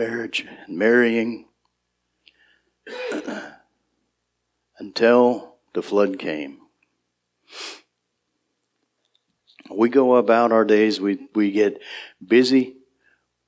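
A middle-aged man preaches with animation through a microphone, in bursts with pauses.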